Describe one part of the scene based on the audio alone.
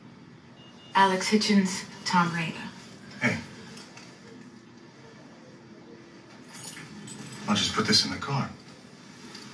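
A man speaks calmly through a television loudspeaker.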